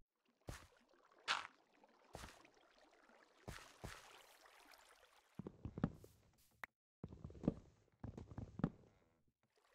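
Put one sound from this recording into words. Blocks knock and thud as they are broken and placed.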